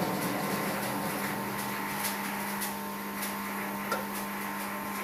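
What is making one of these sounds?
A machine motor hums steadily and loudly.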